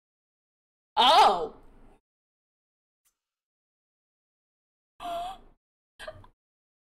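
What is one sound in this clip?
A young woman laughs into a close microphone.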